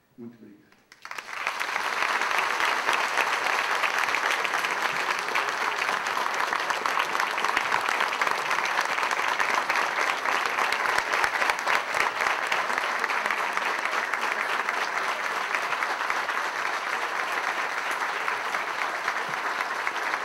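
A large crowd applauds loudly and steadily.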